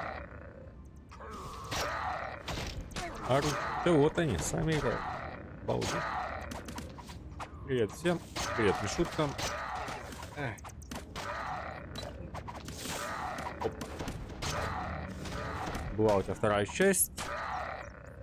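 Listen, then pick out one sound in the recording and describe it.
Swords clash and strike in quick bursts.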